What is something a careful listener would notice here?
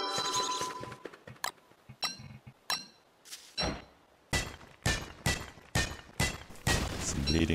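A pickaxe strikes rock in quick, sharp knocks.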